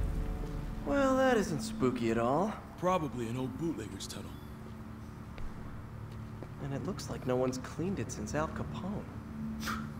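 A young man talks casually.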